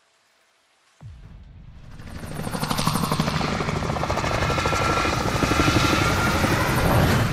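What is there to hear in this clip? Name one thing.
Helicopter rotors thump and roar overhead.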